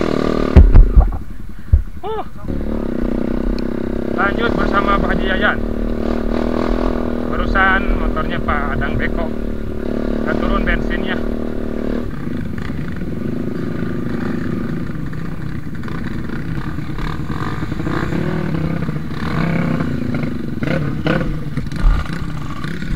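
A dirt bike engine runs and revs close by.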